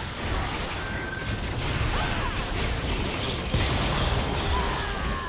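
Spell effects whoosh, zap and crackle during a game battle.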